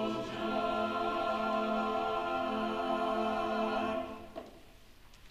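A choir holds a final sustained chord in a large hall.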